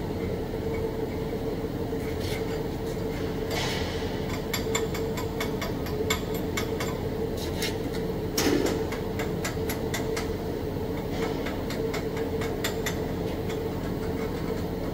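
A welding torch hisses and crackles steadily.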